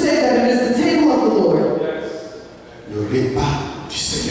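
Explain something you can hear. A woman speaks through a microphone.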